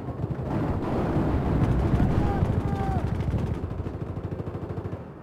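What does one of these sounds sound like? Explosions rumble deeply and roll on.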